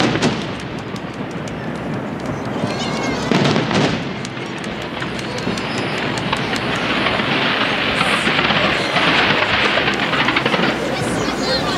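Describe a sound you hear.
Fireworks crackle and sizzle steadily.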